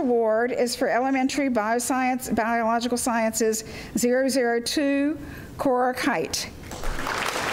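A young girl speaks clearly through a microphone.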